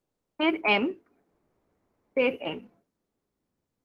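A young woman speaks briefly and calmly into a microphone, as on an online call.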